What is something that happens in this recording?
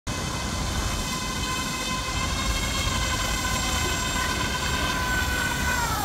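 A small model craft's motor whines steadily on the water, dropping in pitch near the end.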